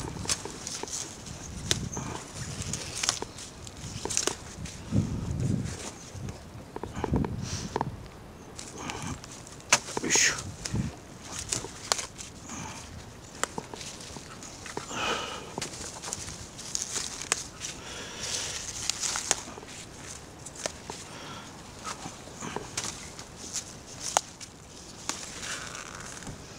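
Leaves rustle and snap as a hand picks lettuce.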